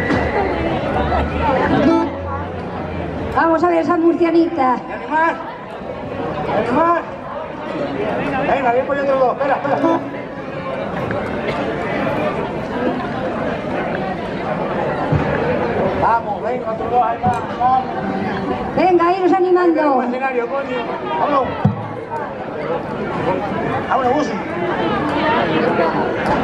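A crowd of men and women chatters and calls out loudly outdoors.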